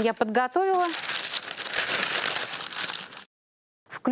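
Baking paper rustles and crinkles.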